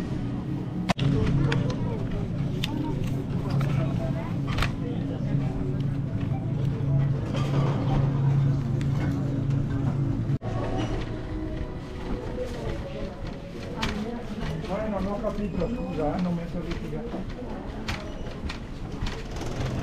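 A shopping cart rattles as its wheels roll over a tiled floor.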